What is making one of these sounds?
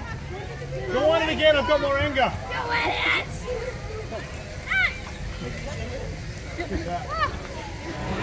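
Riders on a boat squeal and shout excitedly.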